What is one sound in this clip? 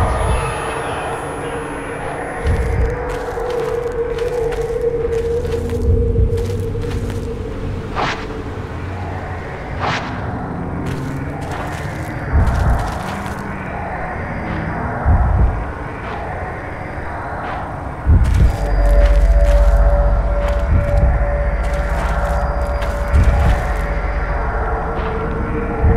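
Footsteps crunch on leaves and dirt.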